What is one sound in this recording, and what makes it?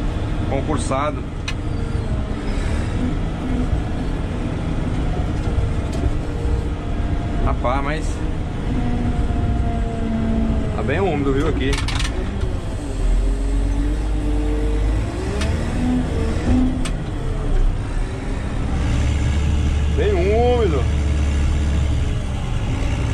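A heavy diesel engine rumbles steadily from close by.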